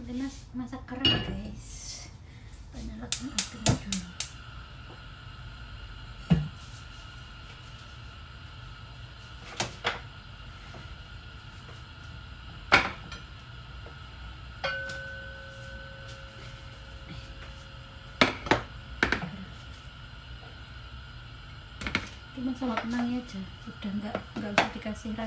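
Utensils clink and knock now and then.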